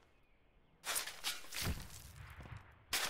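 A shovel scrapes and digs into dry earth.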